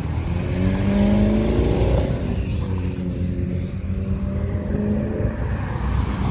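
A sports car engine roars as the car drives past close by.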